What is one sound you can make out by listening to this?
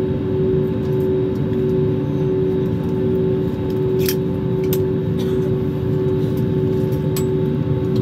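A jet engine hums steadily inside an airliner cabin.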